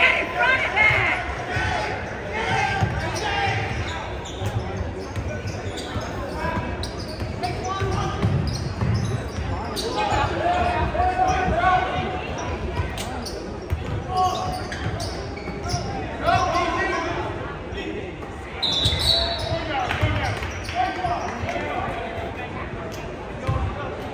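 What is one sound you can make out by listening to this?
Basketball shoes squeak sharply on a hardwood floor.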